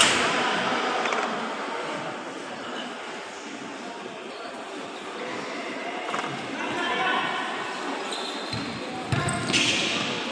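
Players' shoes squeak on the court.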